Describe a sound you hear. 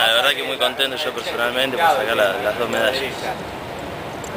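A young man speaks calmly and close by, outdoors.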